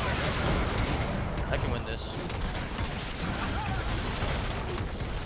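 Magic spells and blows crackle and clash in a video game fight.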